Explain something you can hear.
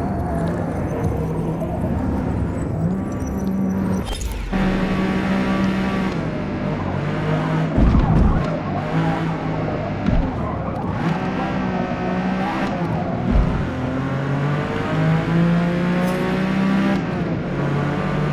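A racing car engine roars, revving up and down through the gears.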